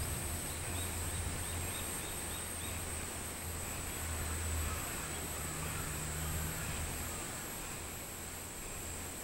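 Wind rustles through leafy trees.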